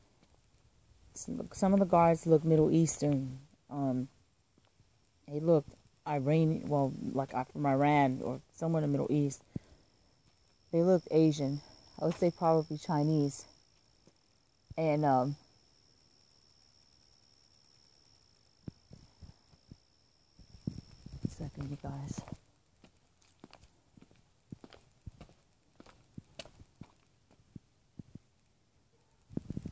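Footsteps shuffle softly over grass and pavement.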